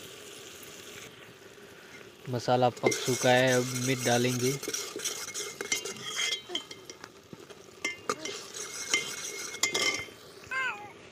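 A metal ladle stirs and scrapes inside a pot.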